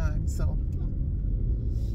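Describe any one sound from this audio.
A middle-aged woman speaks briefly and casually close by.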